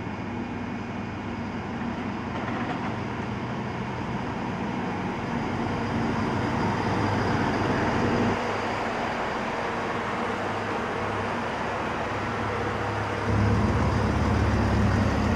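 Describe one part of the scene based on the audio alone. A diesel train engine rumbles steadily as a train rolls slowly past.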